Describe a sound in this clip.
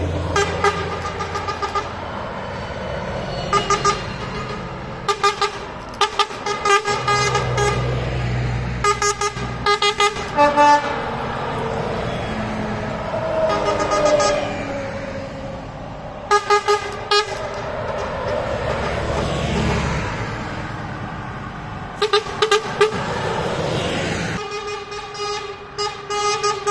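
Buses drive past one after another, engines rumbling and tyres hissing on the road.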